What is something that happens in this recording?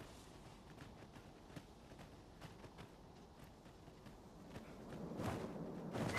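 Footsteps crunch on sandy ground.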